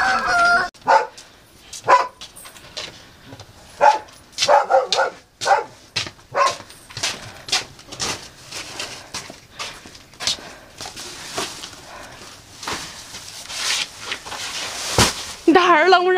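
Heavy sacks thump down onto a pile.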